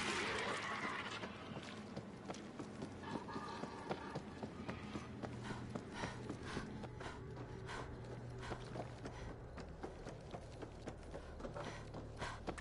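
Footsteps run across a hard floor.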